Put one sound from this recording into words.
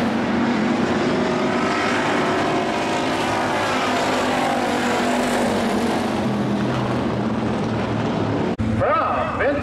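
Race car engines roar around a dirt track.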